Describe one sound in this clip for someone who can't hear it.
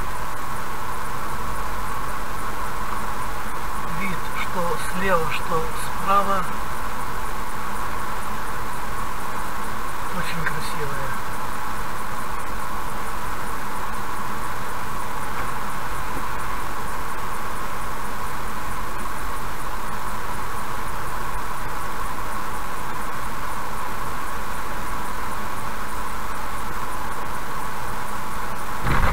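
Tyres roll steadily on a paved road as a car drives along.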